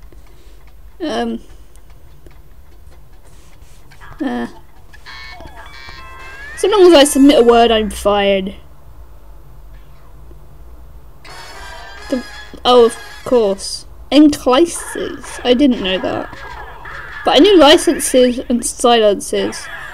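A tablet game plays short chiming sound effects.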